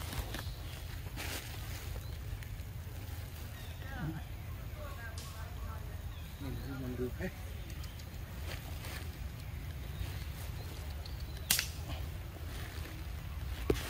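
A monkey bites and chews soft, juicy fruit up close.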